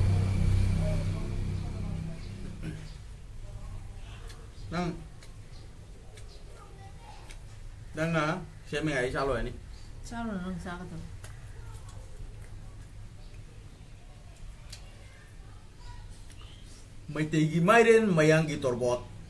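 Fingers squish and mix soft rice on a plate.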